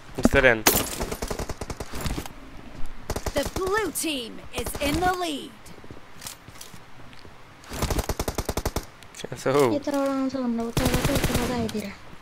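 Rapid bursts of rifle fire crack close by.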